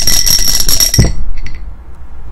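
A die clatters onto a hard table.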